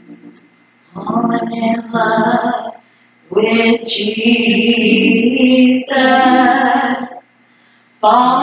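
A woman sings loudly through a microphone and loudspeakers.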